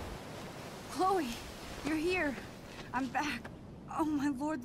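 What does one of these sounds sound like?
A young woman speaks emotionally, her voice breaking.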